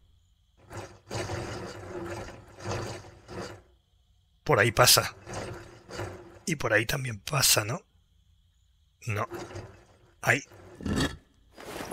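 A heavy metal gate mechanism clanks and grinds as it opens.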